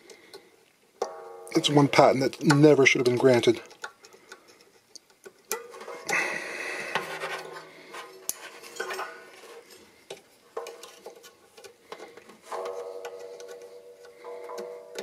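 A banjo string rings with a steady tone.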